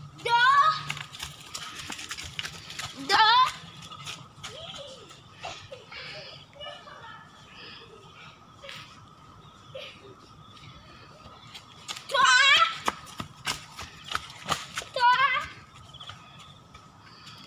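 Footsteps crunch through dry leaves as a child runs.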